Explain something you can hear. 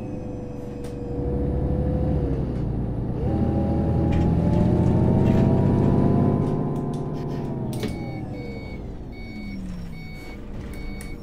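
A bus engine revs up as it accelerates, then winds down as it slows.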